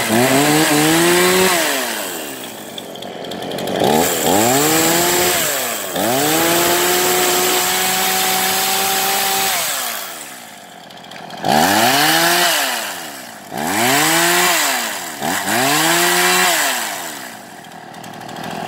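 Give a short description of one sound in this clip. A chainsaw engine revs up and down repeatedly.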